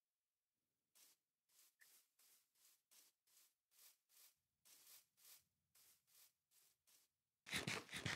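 Footsteps patter steadily through grass.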